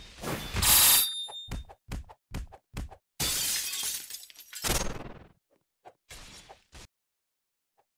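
Sharp hits and slashes strike in quick bursts.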